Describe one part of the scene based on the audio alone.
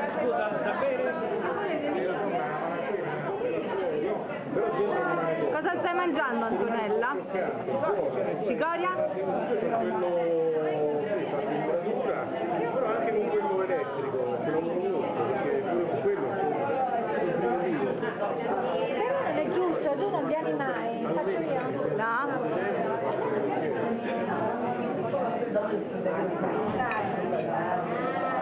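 Several men and women talk and chatter at once nearby.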